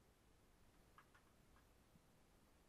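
Small plastic parts click softly as they are handled.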